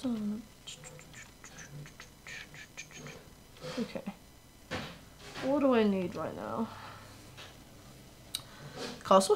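A young woman speaks casually into a microphone.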